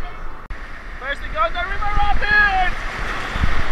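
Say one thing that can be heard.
A young man whoops with excitement close to the microphone.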